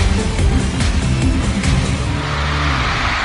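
Pop music plays loudly over speakers and ends abruptly.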